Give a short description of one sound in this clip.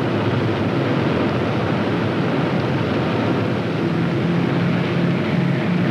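A propeller plane's engines roar loudly and steadily as it takes off.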